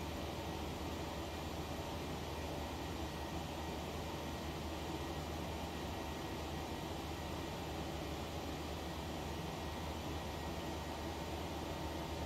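A jet airliner's engines hum steadily with a low rushing roar.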